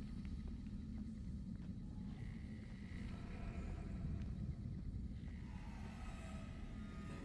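Footsteps crunch softly on rocky ground.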